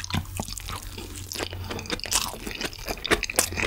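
A man slurps food up close.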